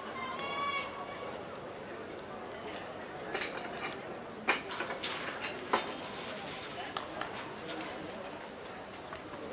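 A crowd of men and women murmurs and chatters outdoors at a distance.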